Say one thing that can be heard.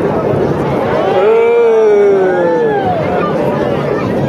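Jet engines whine, rising and falling in pitch as the planes pass.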